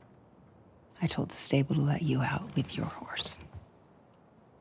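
A woman speaks calmly and firmly, close by.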